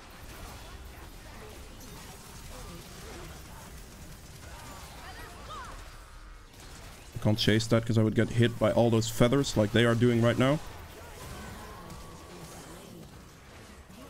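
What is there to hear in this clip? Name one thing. Game sound effects of spells and hits play softly.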